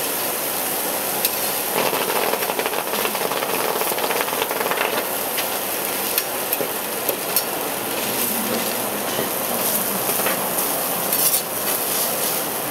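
Metal spatulas scrape and clink on a hot steel griddle.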